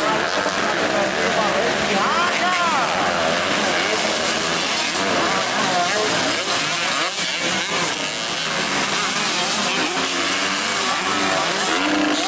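Dirt bike engines rev hard, rising and falling.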